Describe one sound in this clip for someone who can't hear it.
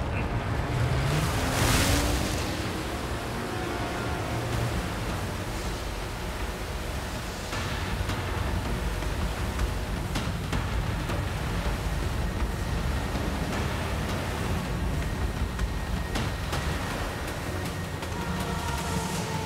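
A jet ski engine roars steadily.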